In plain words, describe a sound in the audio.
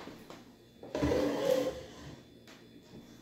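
A wooden drawer slides and bumps shut.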